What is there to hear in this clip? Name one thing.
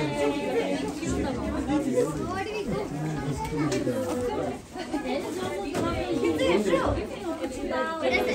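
Young children speak in high voices.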